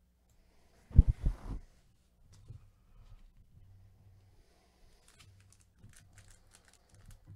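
A foil card pack crinkles and rustles as hands handle and tear it open.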